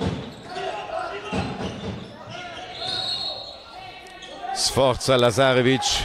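A man shouts from the sideline.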